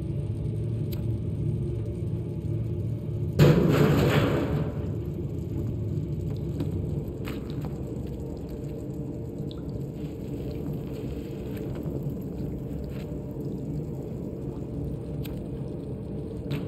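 Light footsteps patter on a hard floor.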